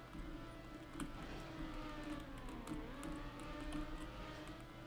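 A car's wheels thud and clatter as it lands on a dirt track.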